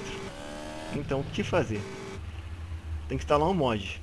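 A motorbike engine roars.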